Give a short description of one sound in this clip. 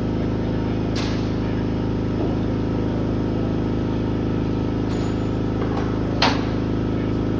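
A metal part clinks on a metal tray.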